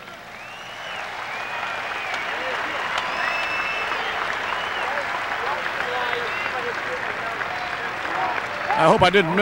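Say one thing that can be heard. A large stadium crowd cheers and whistles loudly.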